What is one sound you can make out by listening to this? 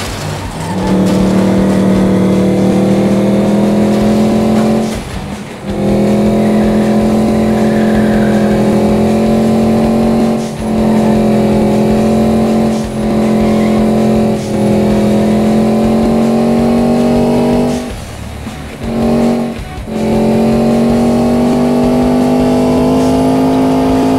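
A racing car engine roars at high revs, dropping briefly between gear shifts.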